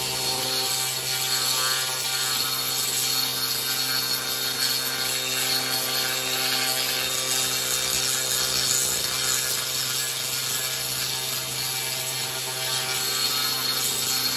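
A power drill whines steadily.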